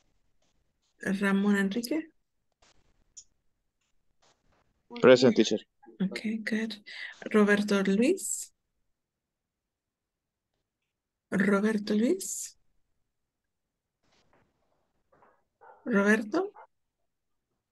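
A woman speaks in short phrases through an online call.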